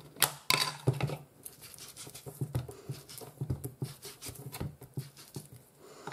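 A stamp taps repeatedly on an ink pad.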